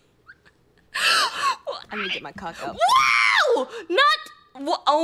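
A young woman laughs into a close microphone.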